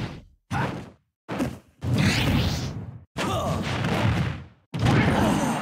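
Video game fighters trade heavy punches with loud impact sounds.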